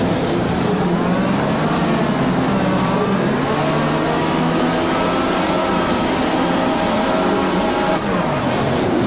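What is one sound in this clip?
Many racing car engines rev loudly at the start of a race.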